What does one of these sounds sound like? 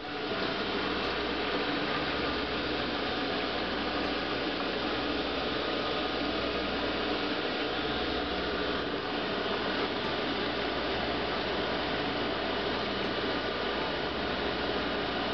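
A pump hums steadily nearby.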